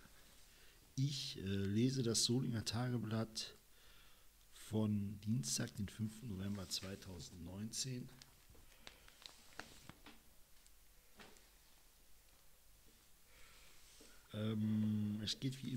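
A man reads out calmly, close to a microphone.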